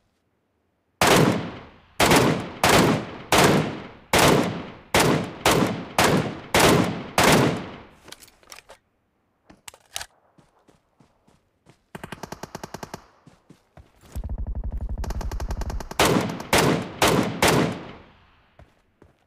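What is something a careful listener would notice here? Rifle shots fire in quick bursts, each ringing out and fading.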